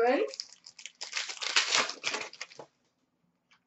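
A foil card wrapper crinkles and rustles.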